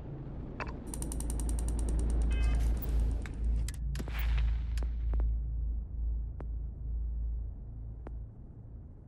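A spaceship engine rumbles deeply.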